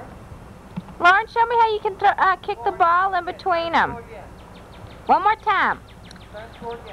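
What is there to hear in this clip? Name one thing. A toddler babbles and squeals in high-pitched bursts outdoors.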